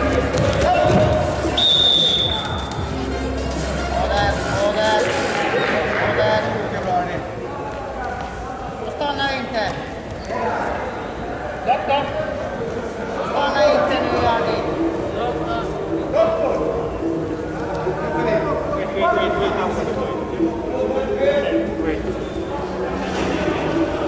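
Men shout and call out in a large echoing hall.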